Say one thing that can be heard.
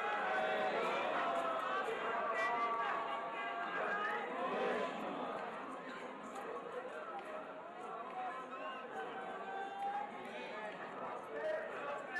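A large crowd chants along outdoors.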